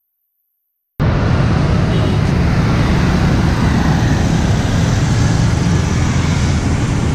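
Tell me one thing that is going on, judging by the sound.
Cars and motorbikes drive past with a steady roar of engines.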